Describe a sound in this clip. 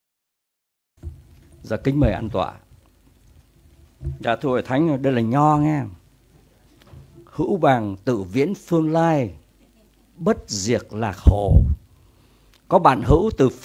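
An elderly man speaks steadily into a microphone, heard through a loudspeaker.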